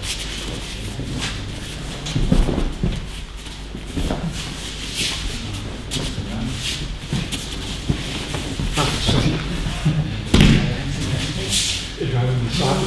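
Bare feet shuffle and slap on mats.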